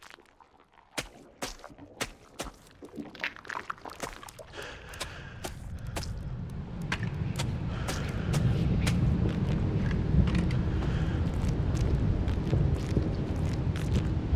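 Footsteps crunch over loose, brittle debris.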